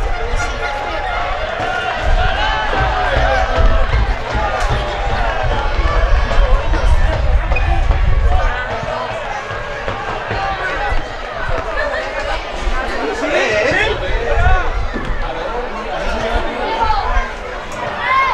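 Young players shout and call to one another outdoors.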